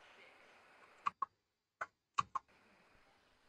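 Short menu clicks sound a few times.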